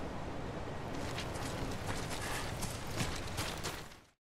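Footsteps crunch on gravel and then tread on soft grass.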